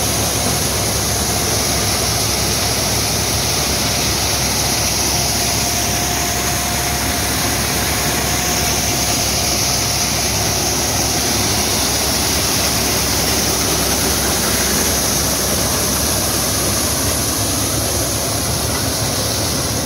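A tractor-driven threshing machine roars steadily close by.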